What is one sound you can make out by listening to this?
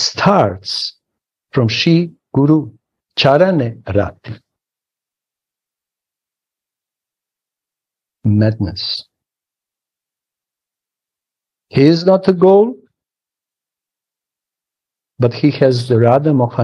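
A middle-aged man speaks calmly over an online call, in short bursts with long pauses.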